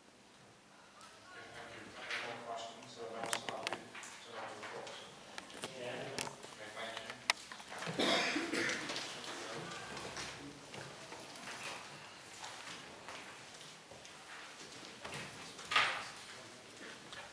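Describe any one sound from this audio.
A man speaks calmly and at length into a microphone.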